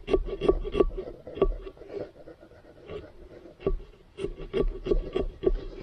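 Hands scrape and scoop inside a hollow pumpkin.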